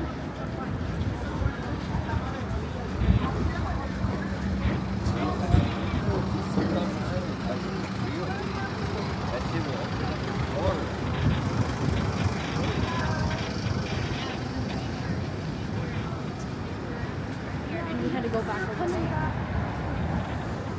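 City traffic rumbles steadily along a busy street.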